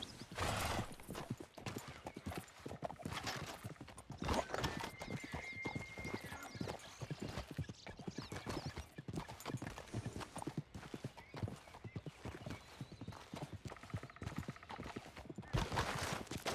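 Footsteps crunch on dirt and rock.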